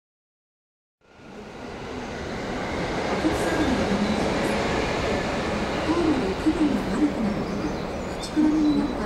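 People murmur and chatter on a busy, echoing station platform.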